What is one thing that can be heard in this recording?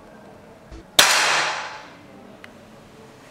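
An air pistol fires with a single sharp crack.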